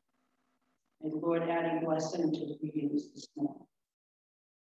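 An elderly woman speaks into a microphone in an echoing hall.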